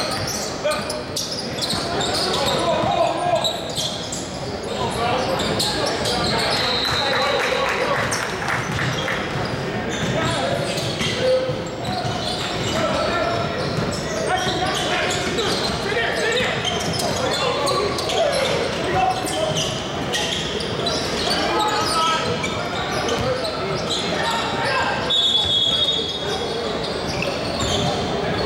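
Spectators and players call out in a large echoing gym.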